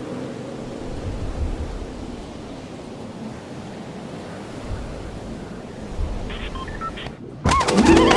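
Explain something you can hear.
Wind rushes steadily past during a high fall.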